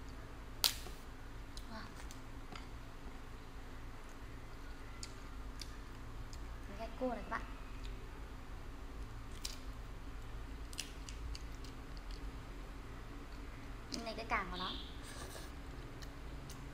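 Crab shell cracks and crunches as it is pulled apart by hand.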